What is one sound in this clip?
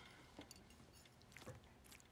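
A spoon scrapes against a plate.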